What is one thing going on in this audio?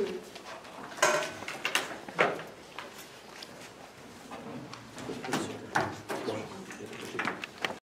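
Objects knock on a wooden table.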